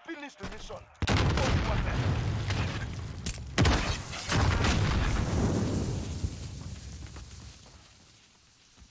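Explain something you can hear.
A loud blast booms and rumbles away.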